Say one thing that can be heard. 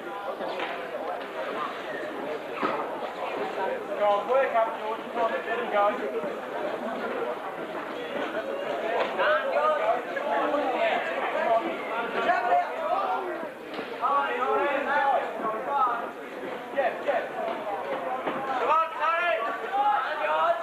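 A crowd cheers and shouts, echoing in a large hall.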